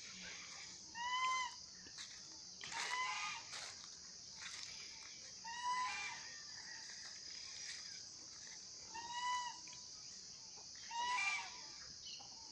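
Chickens cluck and call nearby.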